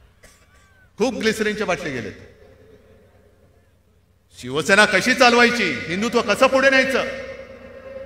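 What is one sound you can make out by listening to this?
A middle-aged man speaks forcefully into a microphone over loudspeakers, with pauses between phrases.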